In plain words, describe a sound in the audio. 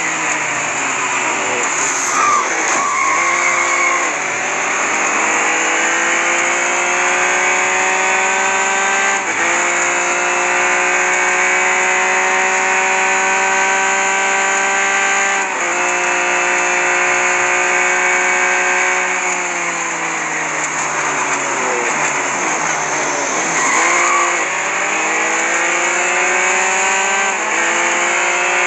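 A racing car engine revs high and shifts up through the gears.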